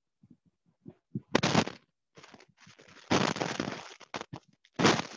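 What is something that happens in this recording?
A person speaks over an online call.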